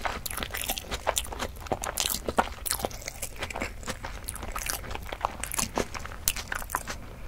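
A young woman makes soft mouth sounds close to a microphone.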